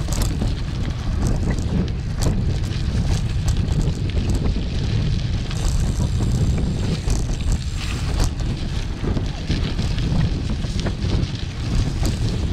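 Wind buffets loudly against a moving microphone outdoors.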